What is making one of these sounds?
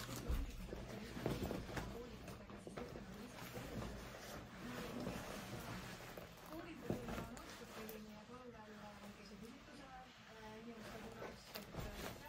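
A leather jacket rustles and creaks as it is put on.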